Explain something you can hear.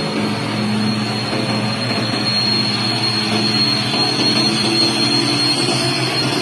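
A heavy truck engine rumbles loudly close by, its pitch shifting slightly.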